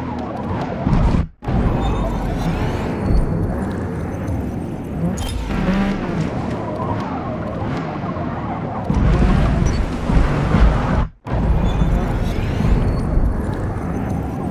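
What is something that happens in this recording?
Tyres screech and skid on the track.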